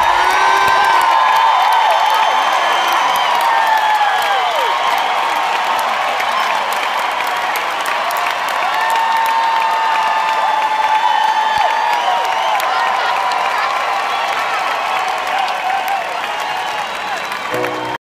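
A large crowd cheers and whistles loudly in a big echoing arena.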